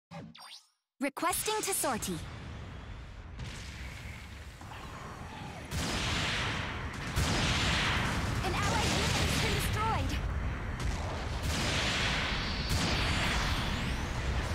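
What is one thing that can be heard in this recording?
A giant robot's thrusters roar steadily.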